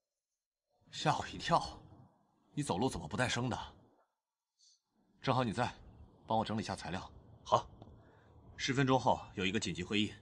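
A man answers nearby in a calm, slightly startled voice.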